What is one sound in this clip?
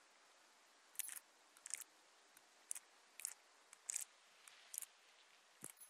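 A combination lock's dials click as they turn.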